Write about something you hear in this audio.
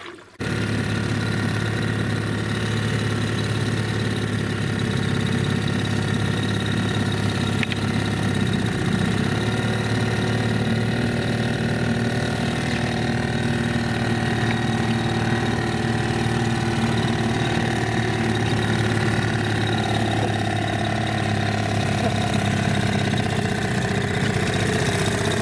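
A small outboard motor drones steadily close by.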